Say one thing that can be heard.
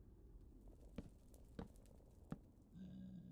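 Wooden ladder pieces are set in place with short clicks.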